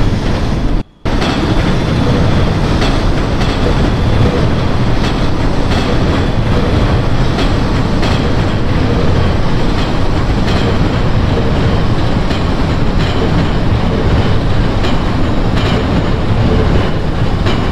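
A subway train rolls past, its wheels clattering on the rails.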